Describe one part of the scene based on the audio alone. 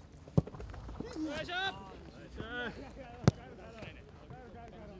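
Young men shout across an outdoor field.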